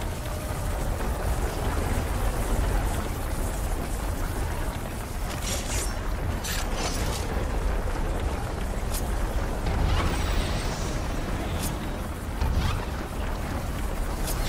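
Heavy armoured footsteps thud on stone.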